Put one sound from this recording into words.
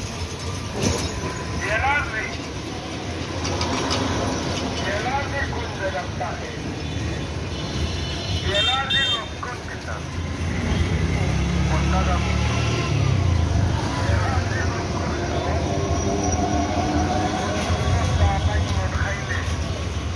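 Traffic rumbles steadily along a city street.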